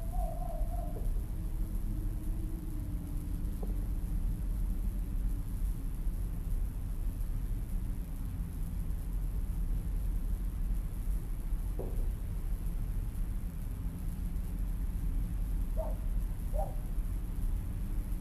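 Wind blows steadily and low outdoors.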